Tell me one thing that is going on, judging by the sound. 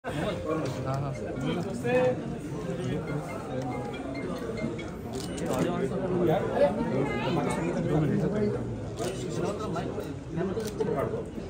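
Several men and women talk over one another in a room.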